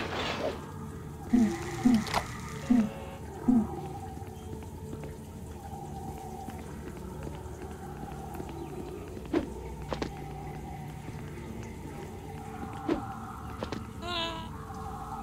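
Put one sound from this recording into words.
Calm game music plays throughout.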